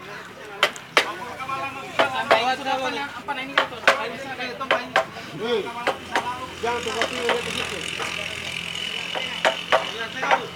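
Several men talk loudly outdoors.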